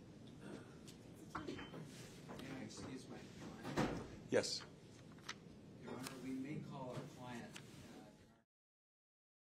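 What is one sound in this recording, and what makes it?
Several men and women talk quietly nearby in a room.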